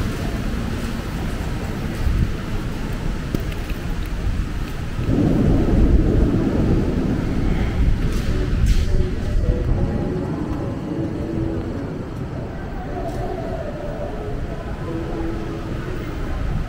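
Distant people murmur faintly in a large, echoing hall.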